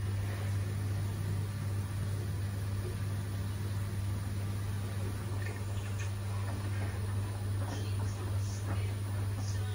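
Wet laundry sloshes and thumps inside a turning drum.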